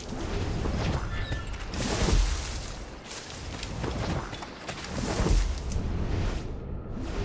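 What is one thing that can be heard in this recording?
Leaves rustle and swish as someone pushes through dense bushes.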